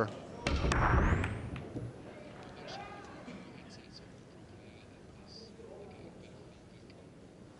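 Billiard balls roll and click against each other across a table.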